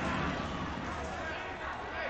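Young men cheer outdoors.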